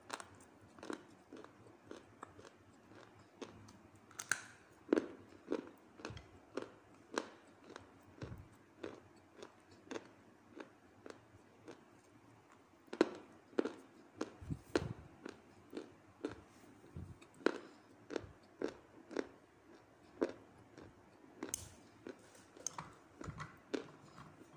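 Dry clay crunches and crumbles between fingers in sharp, close snaps.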